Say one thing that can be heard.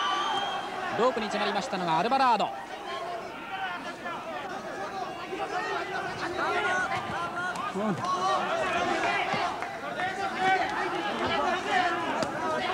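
Gloved punches thud against a boxer's body.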